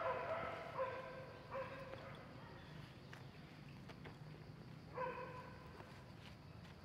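A monkey gives short high-pitched calls nearby.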